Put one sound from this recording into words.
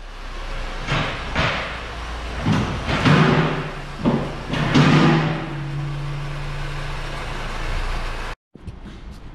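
A car engine runs as the car drives slowly forward and stops.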